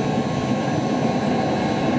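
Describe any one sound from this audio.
Flames whoosh up from a furnace's open top.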